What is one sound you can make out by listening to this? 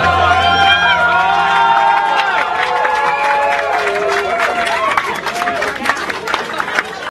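A crowd of men cheers and shouts nearby.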